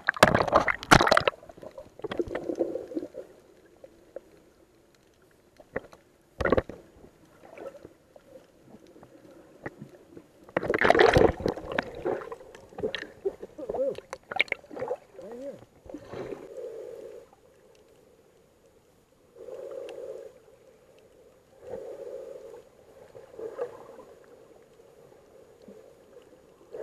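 Muffled underwater bubbling and rushing sounds come and go.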